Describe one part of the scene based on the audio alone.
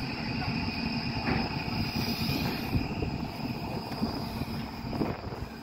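A large crane's machinery rumbles and hums steadily.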